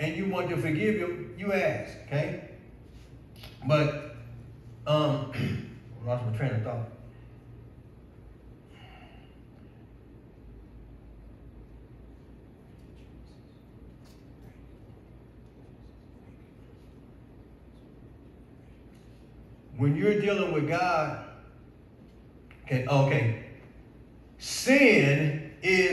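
A man speaks with emphasis through a microphone in a large, echoing room, with long pauses.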